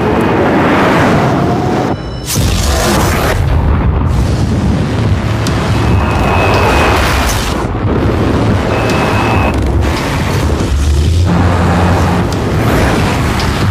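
Tyres hiss and spray on a wet road.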